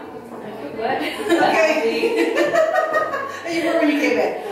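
A second young woman answers with a cheerful laugh.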